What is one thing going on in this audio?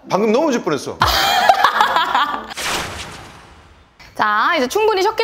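A young woman talks brightly.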